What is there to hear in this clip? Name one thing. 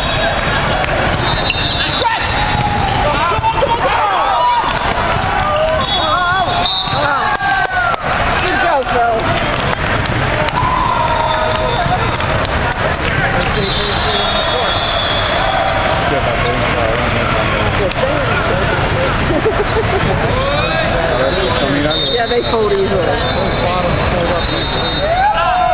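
Squeaky sneakers chirp sharply on the court floor.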